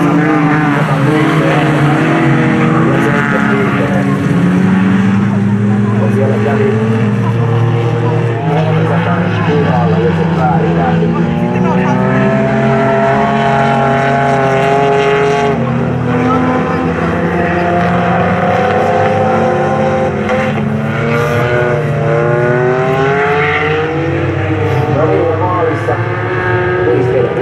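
Race car engines roar and rev as cars speed around a track.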